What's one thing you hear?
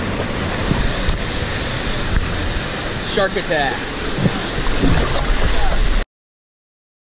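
Water gushes out of a slide tube into a pool.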